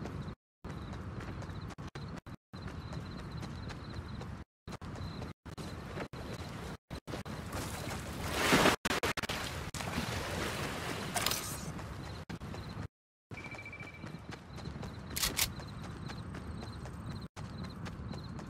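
Footsteps run over soft ground.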